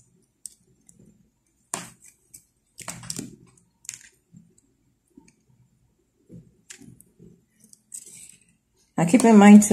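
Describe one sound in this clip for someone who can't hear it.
Plastic beads click softly against each other.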